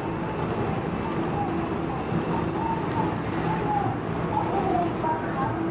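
An electric train hums steadily as it idles nearby.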